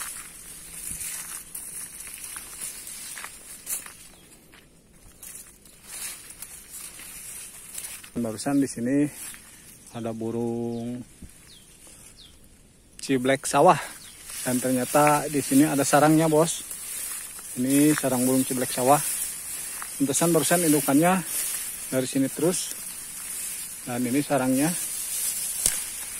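Wind rustles through tall grass.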